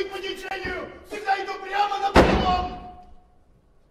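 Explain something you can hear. A man shouts loudly, heard from a distance in a large hall.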